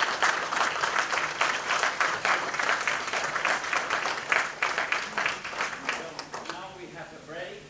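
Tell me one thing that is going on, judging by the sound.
An audience applauds in a large hall.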